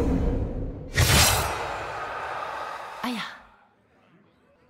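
A loud magical blast booms and rumbles away.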